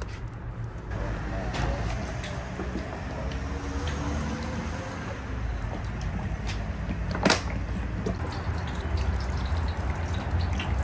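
Oil pours and splashes into a large metal pot.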